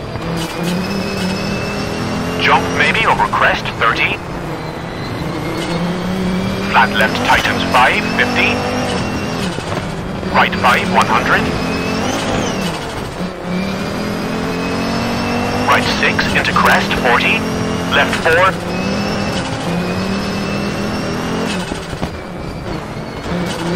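A rally car engine roars and revs up and down through gear changes.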